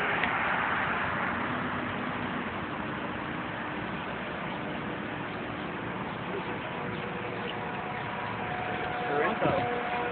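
Traffic passes by nearby.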